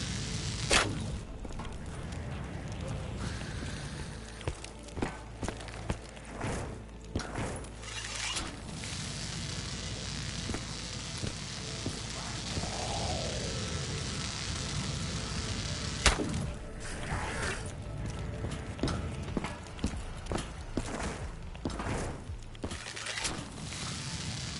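A bow fires arrows with sharp twangs and bursts.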